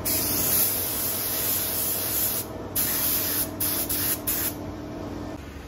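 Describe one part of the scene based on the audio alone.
A spray gun hisses loudly in bursts, then stops.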